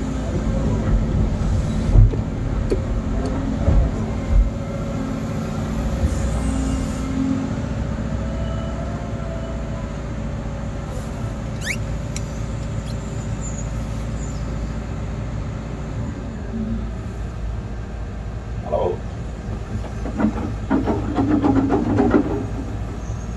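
An excavator engine rumbles steadily from inside the cab.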